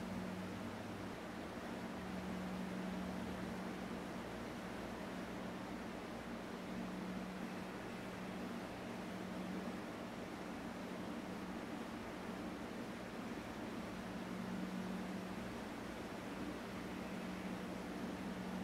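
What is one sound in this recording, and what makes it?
A man hums a low, steady note close by.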